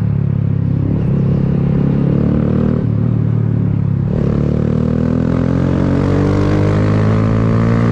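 A motorcycle engine hums close by and revs up as it speeds along.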